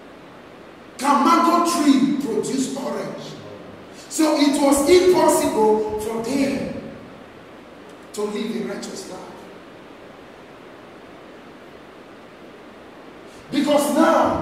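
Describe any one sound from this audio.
A young man speaks loudly and with animation in a room with a slight echo.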